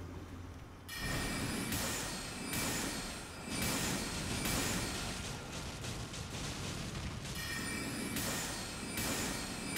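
Magic sword blasts whoosh and crackle again and again.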